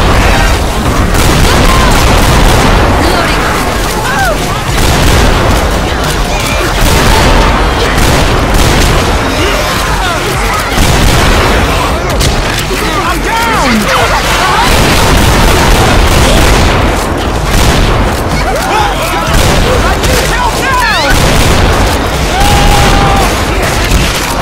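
Zombies growl and shriek nearby.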